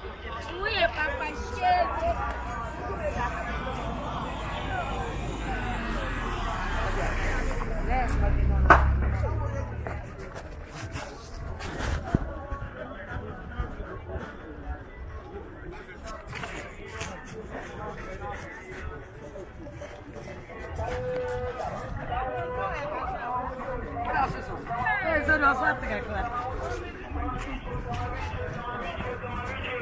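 Many people chatter in a busy outdoor market.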